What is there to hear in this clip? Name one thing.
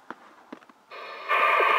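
A two-way radio crackles with a burst of static.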